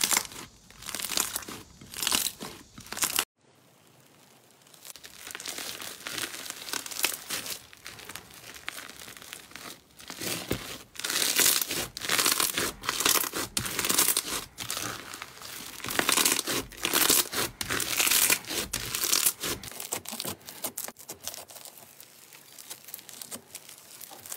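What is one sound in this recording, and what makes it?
Slime squelches and crackles as hands squeeze and stretch it.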